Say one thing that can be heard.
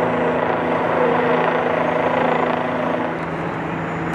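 A heavy truck engine idles with a low, steady rumble.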